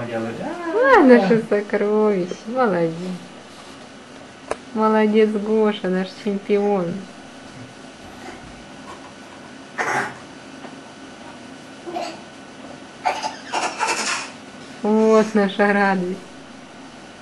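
A woman talks nearby in a high, playful voice.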